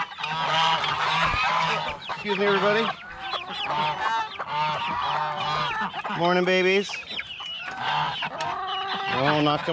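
Hens cluck.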